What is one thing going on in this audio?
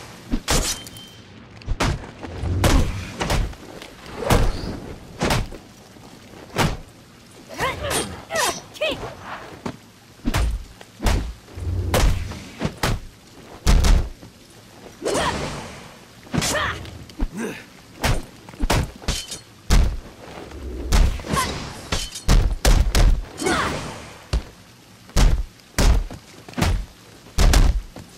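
Punches and kicks land with heavy thuds in a fast fight.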